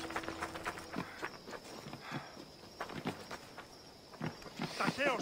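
Footsteps run quickly over dirt and wooden boards.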